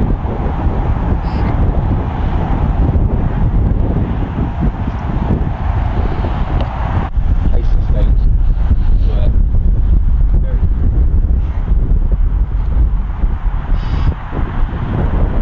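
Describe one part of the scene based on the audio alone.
Strong wind blows across open ground, buffeting the microphone.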